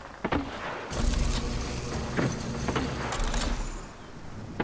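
A zipline hums and rattles as a game character rides along a cable.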